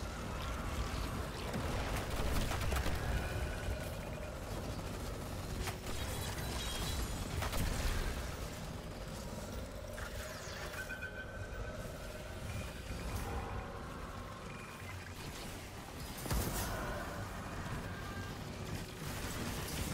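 Gunfire blasts in rapid bursts.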